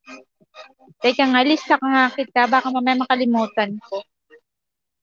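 A young woman sings into a close microphone.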